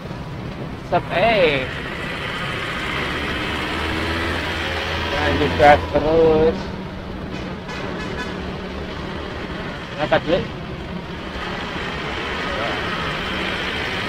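Vehicle engines hum steadily in slow traffic nearby.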